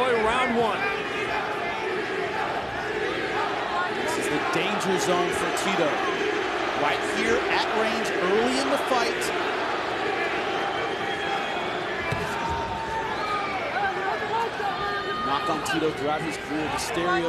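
A large crowd cheers and shouts throughout an echoing arena.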